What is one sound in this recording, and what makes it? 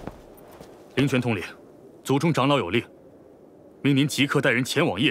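A young man speaks firmly and clearly, close by.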